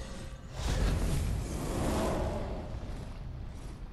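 A flaming weapon whooshes and roars.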